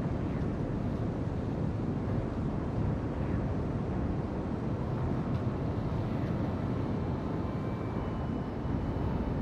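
A ship's engine rumbles low and steady.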